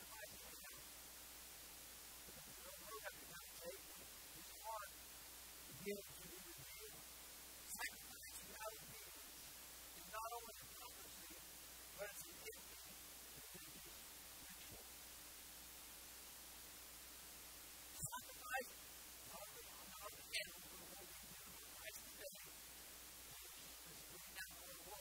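A man preaches through a microphone, speaking with pauses and growing emphasis.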